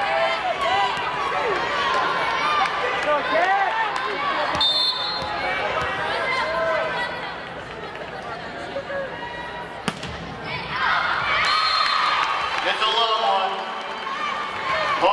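Shoes squeak sharply on a hardwood court.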